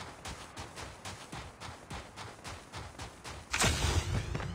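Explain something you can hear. Footsteps crunch quickly over dirt and snow.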